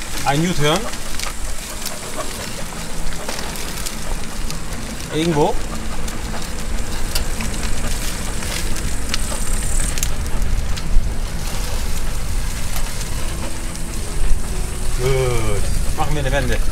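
Bicycle tyres roll steadily over a paved path.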